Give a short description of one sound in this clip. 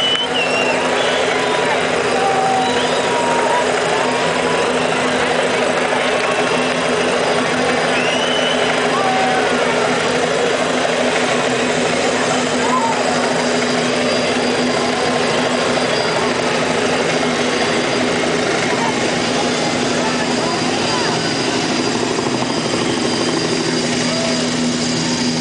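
A large crowd cheers and roars loudly in a big echoing arena.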